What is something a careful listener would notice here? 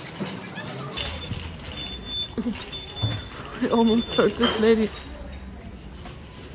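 A shopping trolley rattles as it rolls along a hard floor.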